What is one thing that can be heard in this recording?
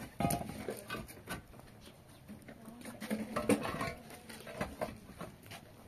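Concrete blocks knock and scrape as men stack them.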